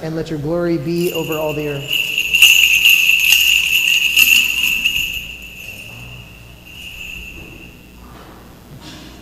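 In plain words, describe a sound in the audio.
Small bells on a censer jingle as it swings.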